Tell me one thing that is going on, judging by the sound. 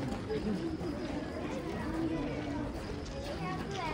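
A crowd of people murmurs quietly at a distance, outdoors.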